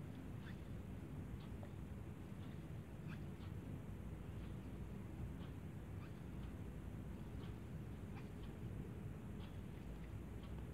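A crochet hook clicks softly against yarn.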